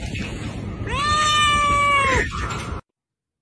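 A cat gives a long, drawn-out meow.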